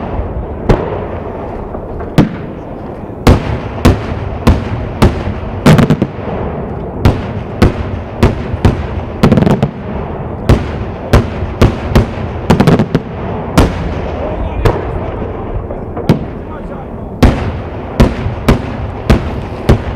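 Crackling fireworks sputter in the sky.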